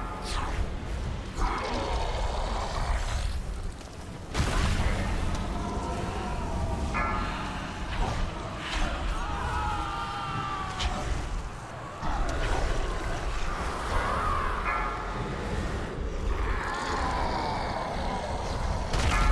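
Magic spells crackle and whoosh during a fantasy battle.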